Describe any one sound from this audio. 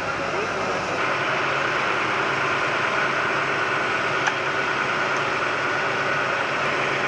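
Water hoses spray with a steady rushing hiss.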